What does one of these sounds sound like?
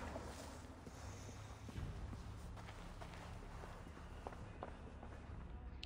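Soft footsteps scuff on stone.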